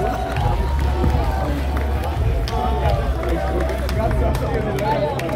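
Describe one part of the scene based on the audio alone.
Hands clap rapidly close by.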